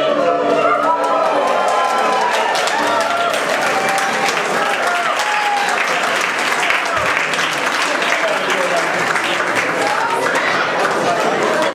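Many people chatter loudly in a big echoing hall.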